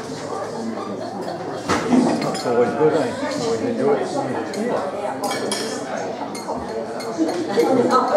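Several men talk casually nearby.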